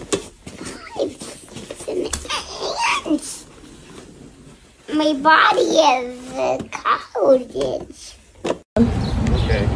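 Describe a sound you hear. A toddler babbles nearby.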